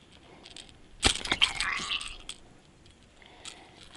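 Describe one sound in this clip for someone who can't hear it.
A fish flaps and wriggles while being lifted from the water.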